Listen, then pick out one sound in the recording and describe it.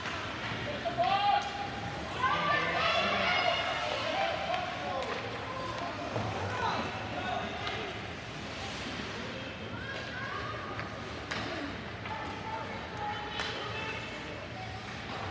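Spectators shout and cheer from the stands.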